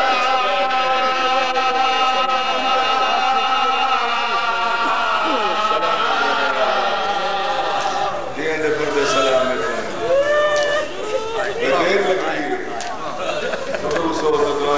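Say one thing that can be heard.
A middle-aged man sings with feeling through a microphone and loudspeakers.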